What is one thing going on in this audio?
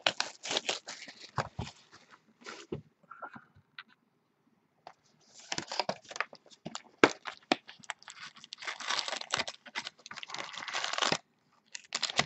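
Cardboard boxes slide and scrape against each other.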